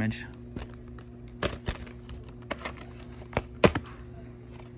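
A plastic tape case clicks open.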